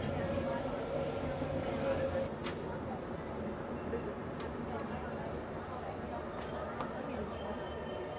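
A train rumbles along the track, heard from inside a carriage.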